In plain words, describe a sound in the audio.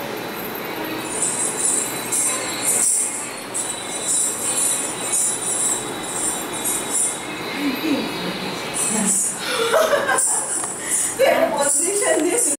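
Ankle bells jingle in bursts as a dancer stamps her feet.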